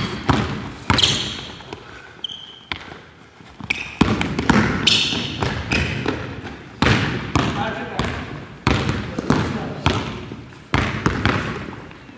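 A basketball bounces on a hardwood floor, with booming echoes in a large gym.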